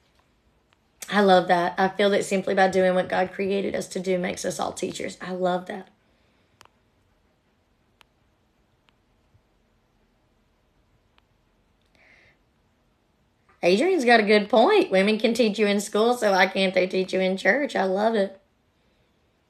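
A young woman speaks calmly, close to a microphone.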